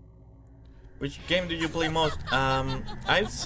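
A young woman laughs in a high, teasing voice.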